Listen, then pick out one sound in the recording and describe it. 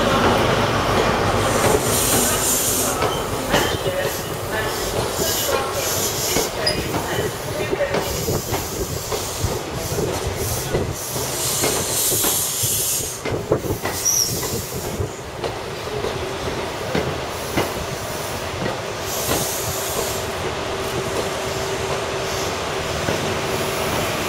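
A passenger train rushes past close by with a loud roar.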